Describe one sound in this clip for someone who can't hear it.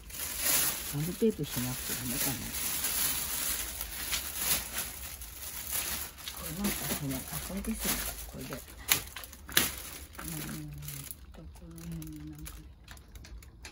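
An elderly woman speaks briefly nearby.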